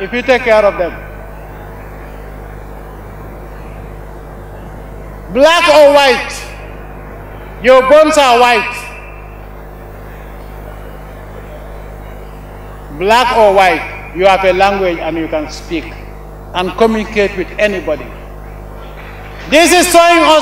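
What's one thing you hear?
A man makes a speech through microphones and loudspeakers outdoors, in short phrases with long pauses.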